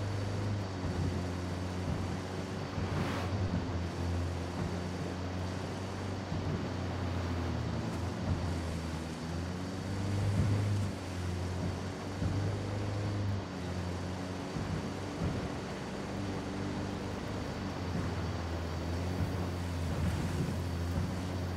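Tyres crunch and rumble over a dirt road.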